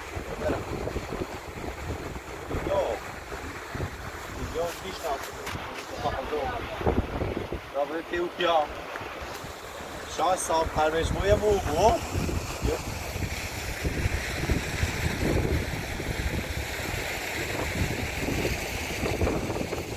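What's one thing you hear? A middle-aged man talks calmly outdoors, close by.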